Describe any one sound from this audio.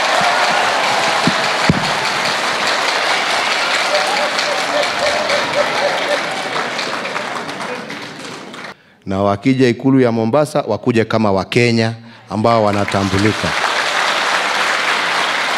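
A large indoor crowd cheers and chants.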